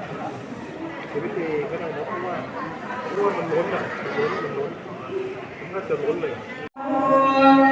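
Several men murmur and talk quietly nearby.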